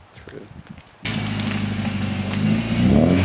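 A car engine starts up with a sudden roar.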